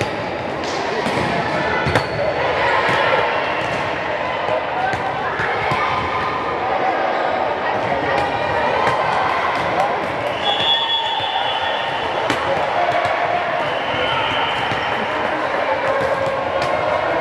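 Many voices chatter and shout across a large echoing hall.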